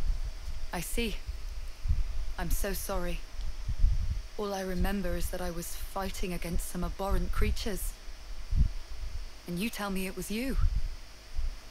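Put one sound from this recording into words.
A young woman speaks quietly and sadly, close by.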